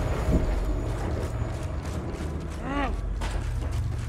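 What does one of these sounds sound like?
Footsteps thud and clank on a metal walkway.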